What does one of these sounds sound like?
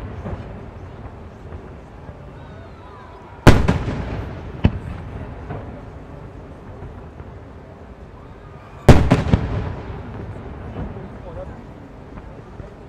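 Firework rockets whistle faintly as they climb.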